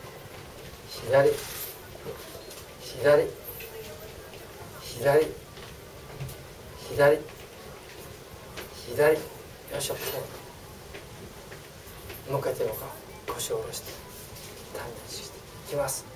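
A middle-aged man speaks into a close microphone in short, loud bursts with pauses between them.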